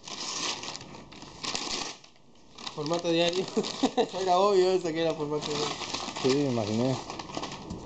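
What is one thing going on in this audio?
Brown paper crackles as it is torn and unwrapped.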